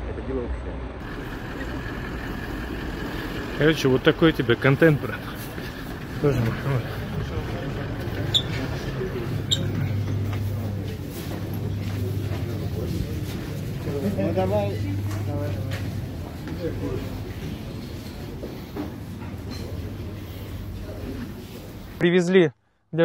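A crowd of men talk and murmur in an echoing room.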